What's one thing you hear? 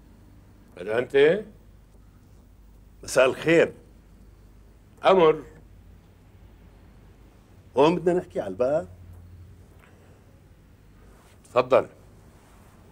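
A man speaks loudly in short bursts.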